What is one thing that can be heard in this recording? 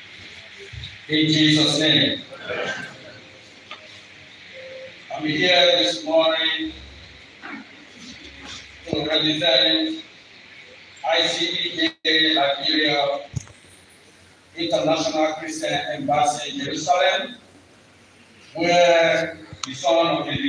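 A man speaks with feeling into a microphone, heard through loudspeakers in an echoing hall.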